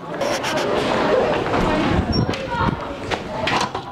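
A door's push bar clanks open.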